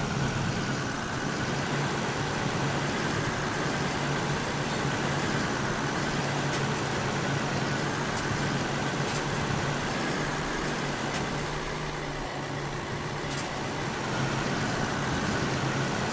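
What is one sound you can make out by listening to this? A truck engine drones steadily at low revs.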